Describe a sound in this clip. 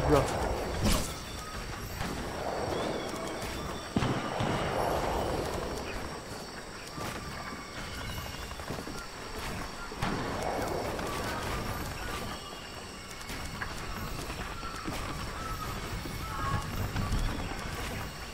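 Wooden building pieces snap into place with quick knocks.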